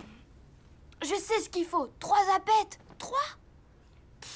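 A boy talks calmly and close by.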